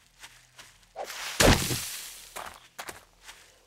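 A fire flares up with a whoosh and crackles.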